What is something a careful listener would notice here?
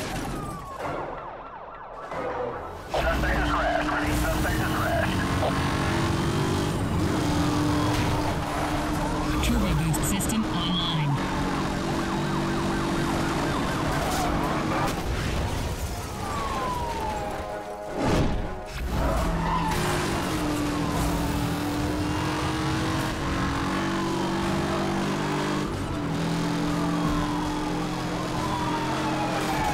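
A police siren wails.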